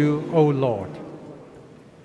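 An elderly man speaks briefly through a microphone.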